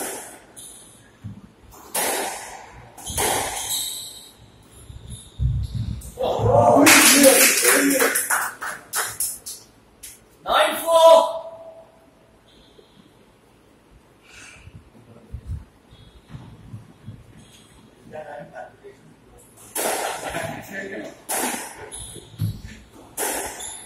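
A squash ball smacks hard against the walls, echoing in a large hall.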